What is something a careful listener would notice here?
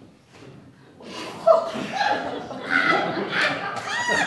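Two young women laugh and shout over each other.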